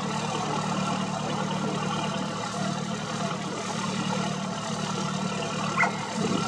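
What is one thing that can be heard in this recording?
Oars splash softly as a rowing boat moves through calm water.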